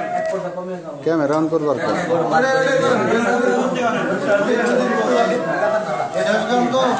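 A young man sings loudly through a microphone.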